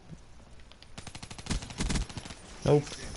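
Rapid gunfire rattles in a quick burst.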